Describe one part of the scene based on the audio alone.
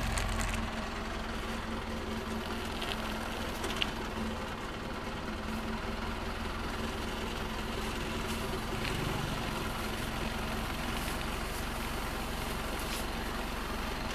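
Metal rattles and clanks as a heavy load shifts.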